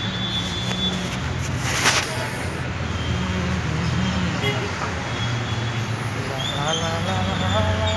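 A man speaks close by, casually.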